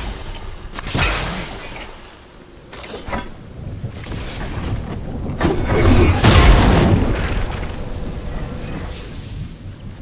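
Video game sound effects whoosh and clang.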